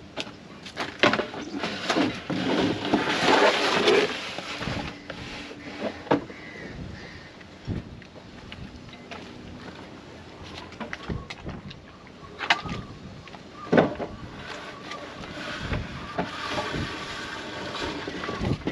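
Wooden boards and debris clatter and crash as they are thrown onto a pile.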